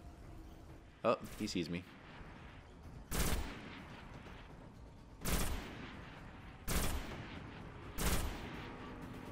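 A rifle fires single loud shots at a steady pace.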